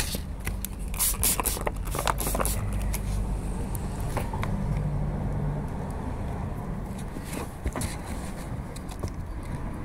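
Water splashes and patters onto pavement close by.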